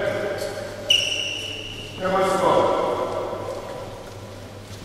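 A man calls out loudly in a large echoing hall.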